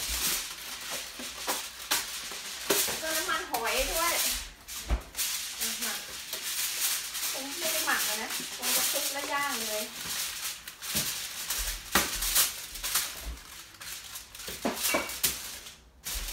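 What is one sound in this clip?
Aluminium foil crinkles and rustles under a boy's hands.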